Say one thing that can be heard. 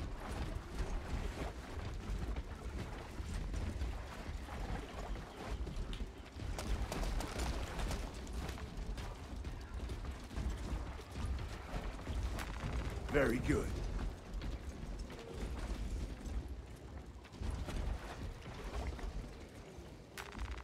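Heavy armoured footsteps thud steadily.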